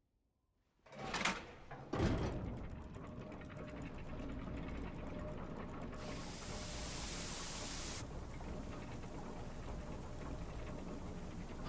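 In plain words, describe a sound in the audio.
Machinery whirs and hums steadily as gears turn.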